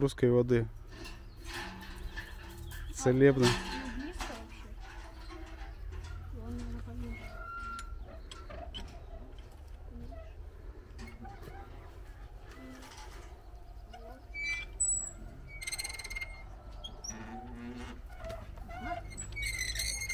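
A metal well crank creaks and rattles as it turns.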